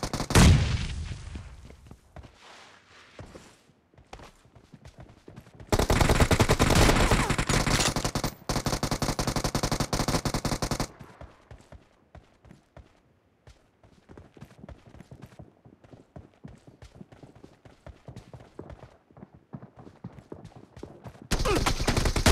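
Footsteps run over the ground.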